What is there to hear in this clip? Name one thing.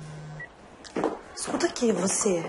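A young woman speaks into a phone nearby.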